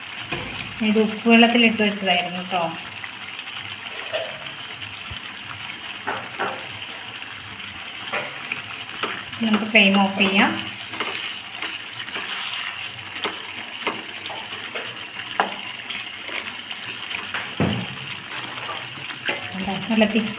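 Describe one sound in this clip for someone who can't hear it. A spatula scrapes and clinks against a pan.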